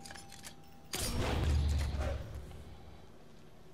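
A silenced pistol fires a muffled shot.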